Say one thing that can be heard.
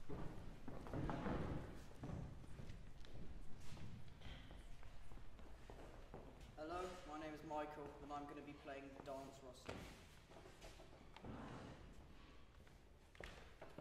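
Footsteps tap on a wooden floor.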